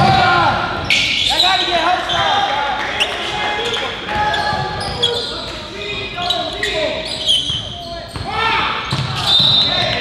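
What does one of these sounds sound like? A basketball bounces on the court with hollow thuds.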